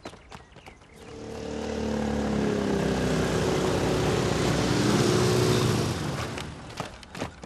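Motorcycle engines roar as they approach and pass close by.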